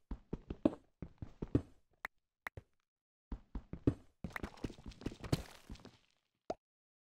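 A pickaxe chips rapidly at stone blocks, with crumbling thuds.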